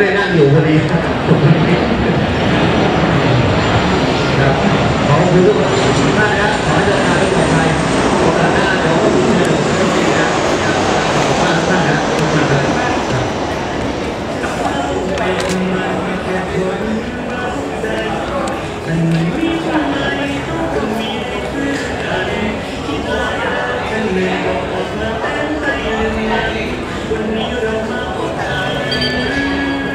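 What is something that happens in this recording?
Men talk and chatter close by, outdoors.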